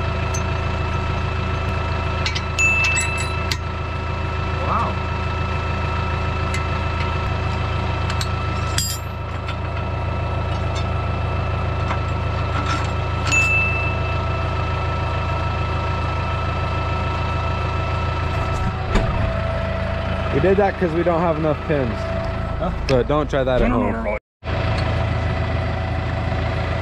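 A tractor engine idles steadily nearby.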